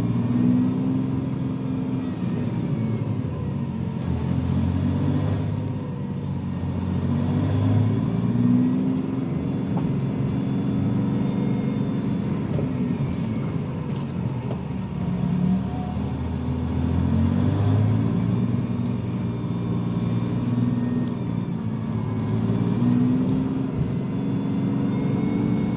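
Traffic hums along a busy road outside.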